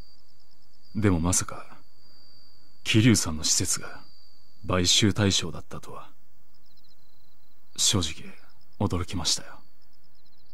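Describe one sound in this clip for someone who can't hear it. A man speaks in a calm, serious voice.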